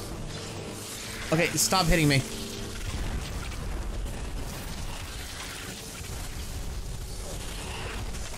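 A magic frost spell hisses and crackles in bursts.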